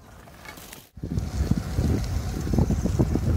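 Wind buffets loudly against a moving bike.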